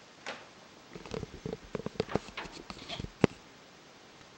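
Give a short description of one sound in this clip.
A heavy wooden door creaks and swings open.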